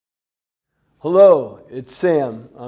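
A man speaks up close with animation.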